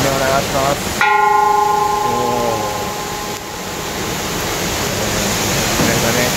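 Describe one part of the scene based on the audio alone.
A large bronze bell is struck once and rings on with a long, slowly fading hum.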